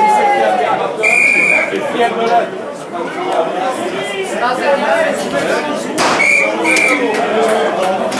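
A referee's whistle blows sharply outdoors.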